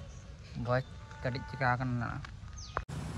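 A young man speaks briefly and casually, close by.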